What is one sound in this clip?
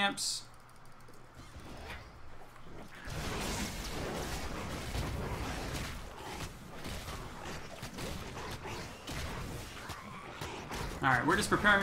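Magic blasts and weapon hits crash together in a busy fight.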